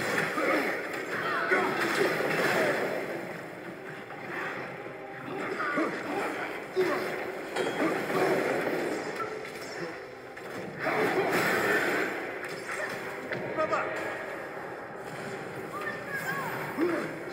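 Monsters snarl and growl during a fight.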